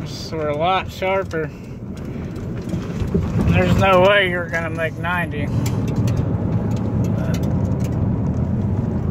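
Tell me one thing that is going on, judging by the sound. A car engine hums with a low, steady road rumble while driving.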